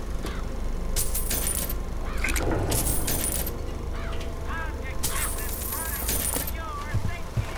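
Coins jingle as they are picked up.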